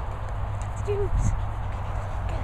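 A tyre toy thuds onto grass.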